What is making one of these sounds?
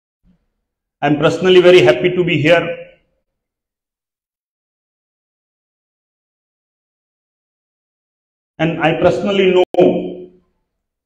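A man speaks through a microphone and loudspeakers, in short phrases with long pauses.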